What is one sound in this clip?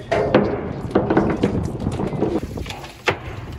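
Wind blusters outdoors on open water.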